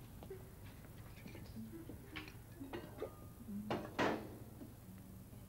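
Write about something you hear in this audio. Dishes and utensils clink and knock close by.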